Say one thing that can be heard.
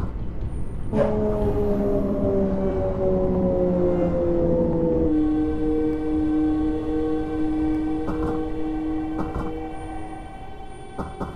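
An electric train motor whines, falling in pitch and then holding steady.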